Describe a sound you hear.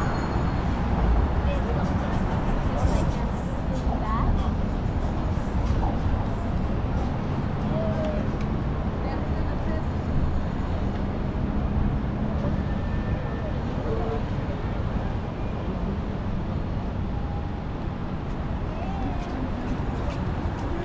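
People chatter faintly as they walk past outdoors.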